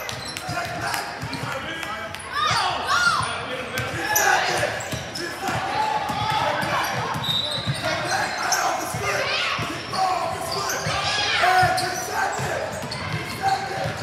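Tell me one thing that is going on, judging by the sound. Spectators cheer and shout in a large echoing hall.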